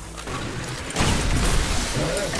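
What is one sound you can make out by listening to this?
An energy blast explodes in a video game.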